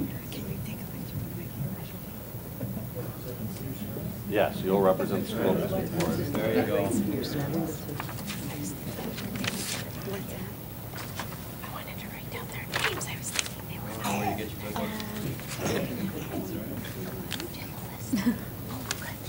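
A crowd of people murmurs and chatters in a large room.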